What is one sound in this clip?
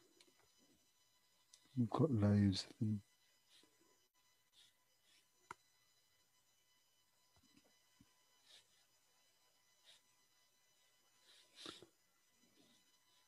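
A brush dabs and strokes softly on paper.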